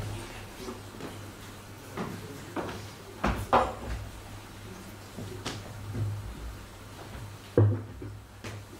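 Chairs knock and scrape on a wooden floor in a large room.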